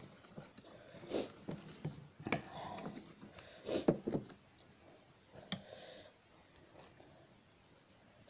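Chopsticks click against a bowl.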